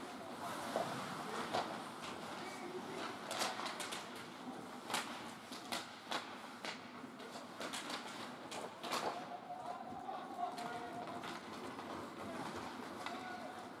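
Ice hockey skates scrape and carve across the ice in a large echoing rink.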